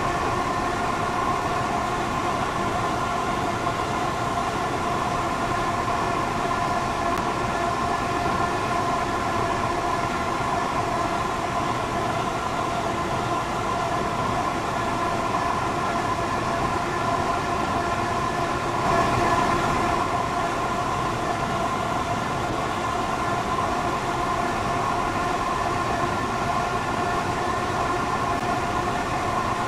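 An electric train hums steadily as it rolls along the rails at speed.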